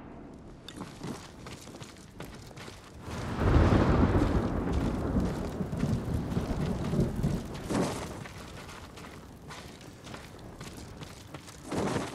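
Footsteps crunch over snowy ground.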